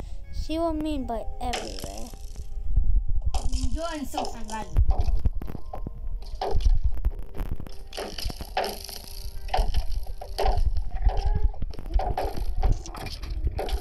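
Bony creatures rattle nearby.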